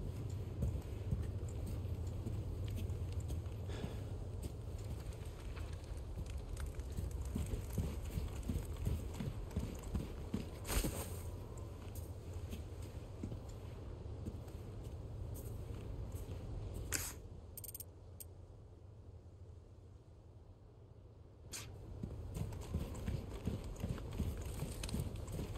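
Footsteps crunch on dirt and dry grass.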